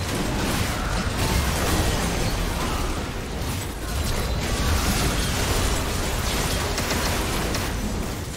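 Magical blasts and impacts crackle and boom in a hectic fight.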